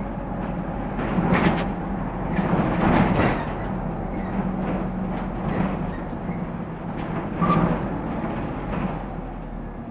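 A bus interior rattles and clatters over bumps.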